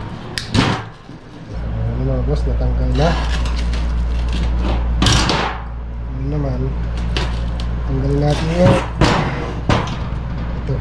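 A heavy metal motor knocks and clunks against a workbench.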